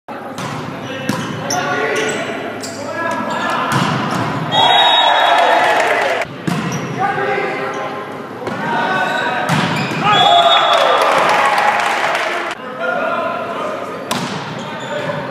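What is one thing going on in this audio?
Young men shout on a volleyball court in an echoing gym.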